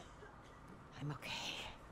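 A middle-aged woman speaks softly and breathlessly.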